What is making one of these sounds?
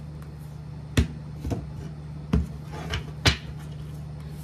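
A deck of cards taps against a table a few times.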